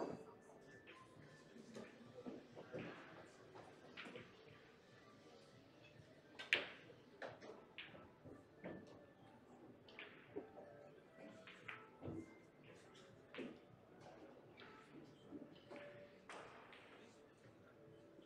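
Pool balls clack together as they are gathered and racked on a table.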